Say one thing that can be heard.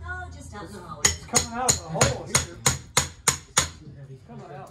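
A hammer bangs rapidly against wooden boards.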